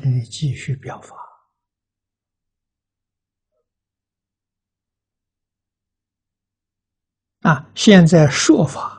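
An elderly man speaks calmly and warmly, close to a microphone.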